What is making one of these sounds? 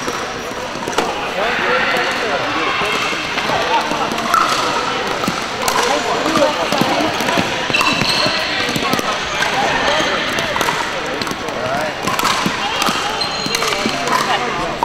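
Paddles hit plastic balls with sharp pops.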